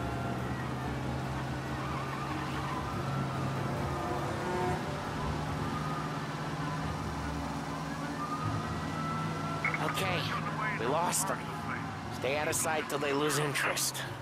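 A car engine hums steadily as the car drives along.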